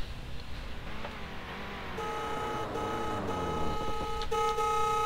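Another car's engine roars past, its pitch sliding down.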